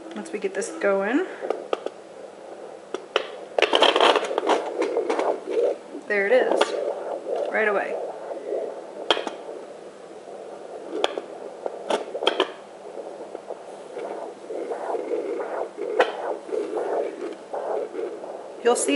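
A handheld fetal heart monitor crackles and whooshes with scratchy static.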